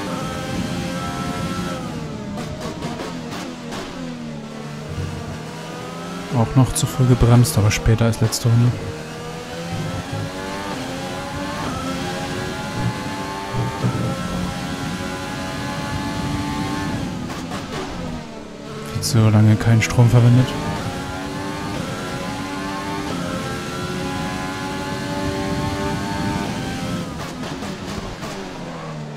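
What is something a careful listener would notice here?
A racing car engine screams at high revs, rising and dropping in pitch through the gear changes.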